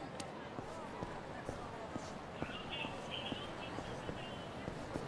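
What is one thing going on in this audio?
A busy street crowd murmurs in the background.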